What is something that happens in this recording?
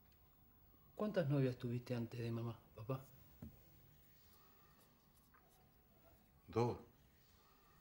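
A man speaks quietly at close range.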